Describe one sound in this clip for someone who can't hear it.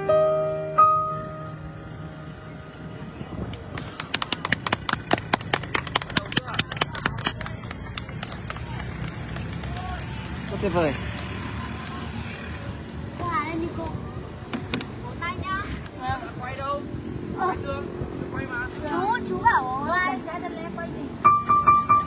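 A piano plays notes close by.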